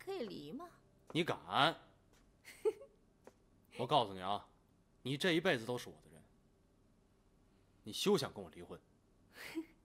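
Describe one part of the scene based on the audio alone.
A young man speaks firmly and with emotion, close by.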